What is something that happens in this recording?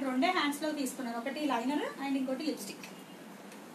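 A woman speaks close by with animation.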